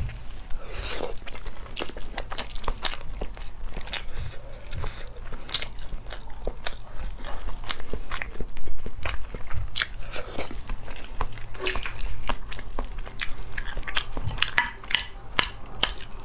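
A young woman chews softly close up.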